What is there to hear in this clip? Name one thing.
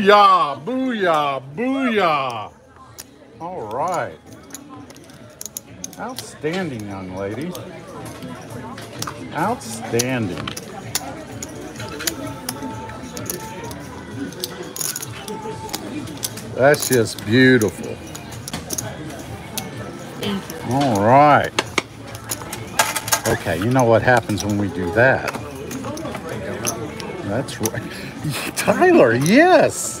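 Gaming chips click and clatter together.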